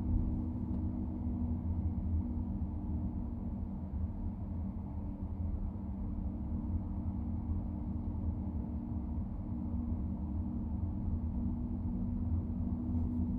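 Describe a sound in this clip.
Tyres roll on a road.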